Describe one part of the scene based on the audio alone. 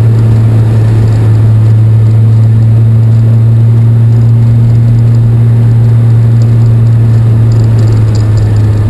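Tyres crunch over a snowy road.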